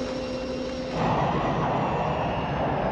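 A jet airliner roars as it races along a runway.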